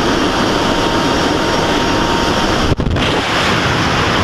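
Airplane engines drone loudly close by.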